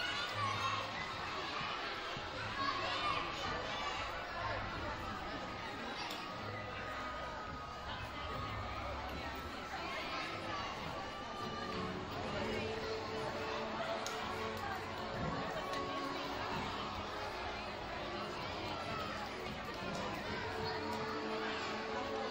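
A crowd of children and adults chatters in a large echoing gym.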